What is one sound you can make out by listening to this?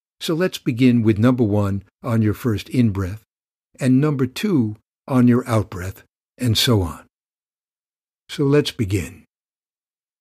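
An older man speaks calmly and warmly, close to a microphone.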